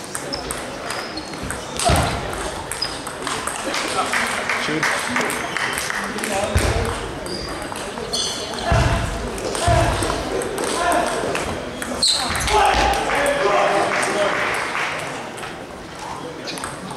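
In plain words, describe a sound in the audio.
A table tennis ball clicks against paddles and bounces on the table.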